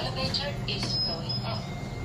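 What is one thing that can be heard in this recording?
A finger presses a lift button with a click.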